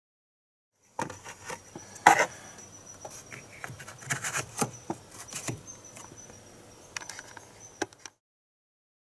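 Metal parts click and tap as a hand works on them.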